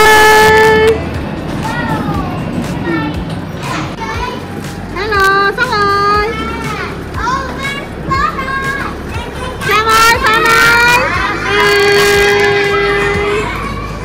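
Young children shout and squeal excitedly nearby.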